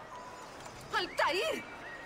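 A woman gasps in alarm.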